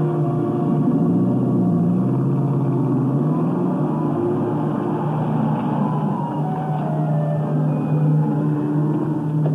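A car engine rumbles as a car pulls slowly up to the curb.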